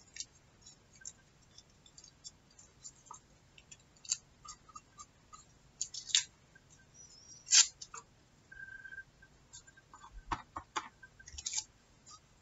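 Paper crinkles and rustles under fingers close by.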